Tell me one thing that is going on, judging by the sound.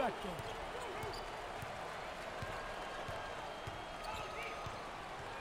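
A basketball bounces on a wooden court in a steady dribble.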